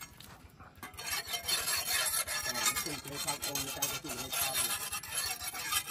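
A metal blade scrapes repeatedly against a block.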